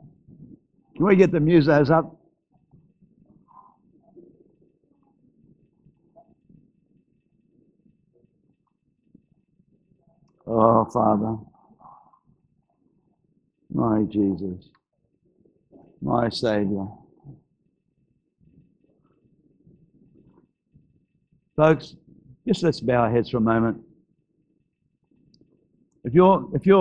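An elderly man speaks calmly into a microphone in a large echoing hall, with long pauses.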